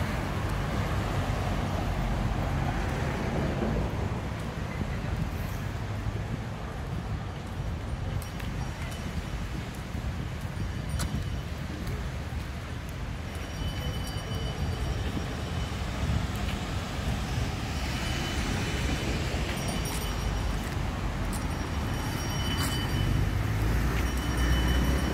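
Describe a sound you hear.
Traffic hums along a nearby road.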